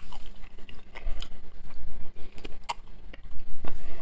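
Bread crust crackles as fingers break it.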